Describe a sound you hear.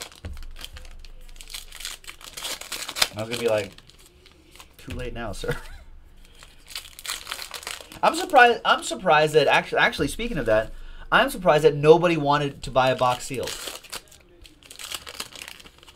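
Trading cards rustle and flick as hands shuffle through them.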